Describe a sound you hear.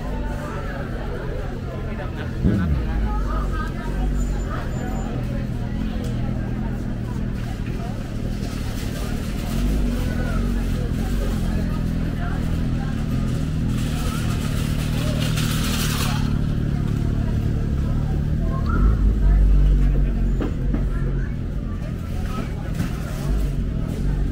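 Shopping cart wheels rattle over concrete.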